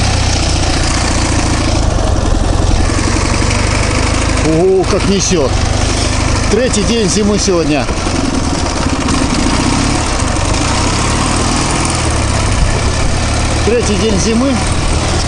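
A motorcycle engine runs steadily and revs up and down.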